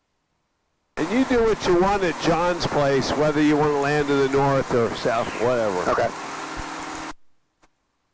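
An older man speaks calmly over a headset intercom.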